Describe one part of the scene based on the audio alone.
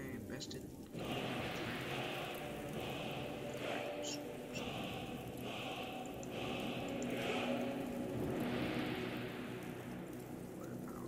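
A deep rushing drone swells and fades.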